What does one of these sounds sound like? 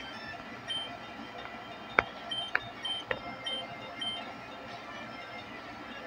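Short electronic blips sound as menu choices are made.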